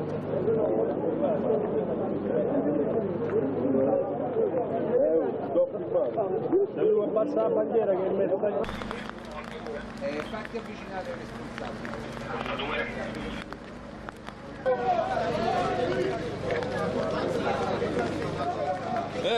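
A crowd of marchers chants and shouts outdoors.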